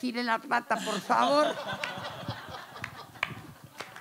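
An audience laughs.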